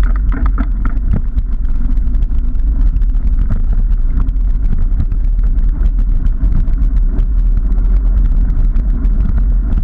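Bicycle tyres roll and crunch over rough, broken pavement.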